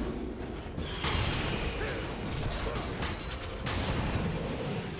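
Game characters clash with bursts of spell and impact effects.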